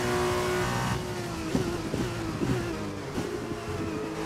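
A racing car engine drops in pitch as the car brakes hard into a corner.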